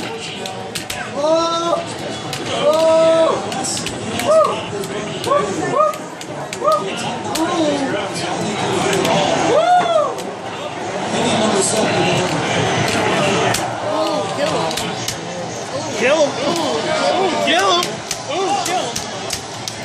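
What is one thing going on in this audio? Fighters in an arcade game shout through a loudspeaker.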